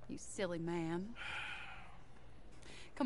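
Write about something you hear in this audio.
A woman speaks calmly and teasingly.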